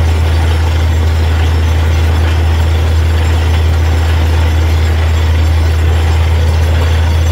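A drilling rig's engine drones loudly and steadily.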